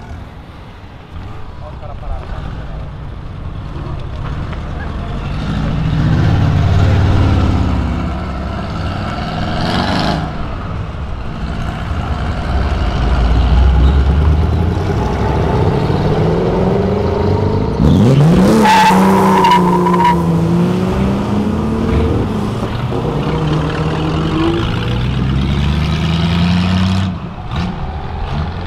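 Powerful car engines rev and rumble loudly close by.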